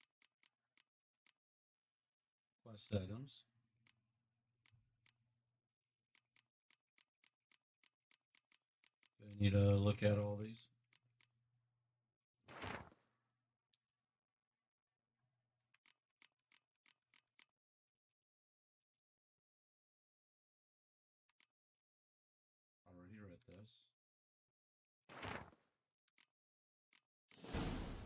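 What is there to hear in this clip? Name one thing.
Soft menu clicks tick in quick runs.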